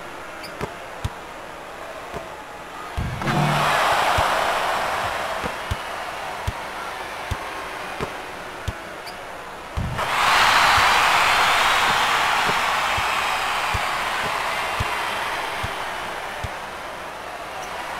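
A basketball bounces steadily on a hardwood floor.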